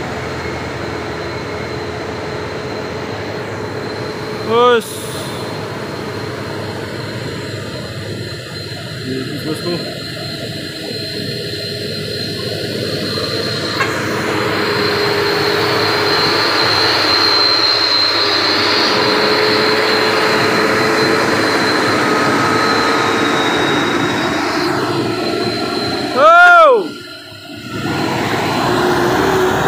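Truck engines rumble and idle nearby.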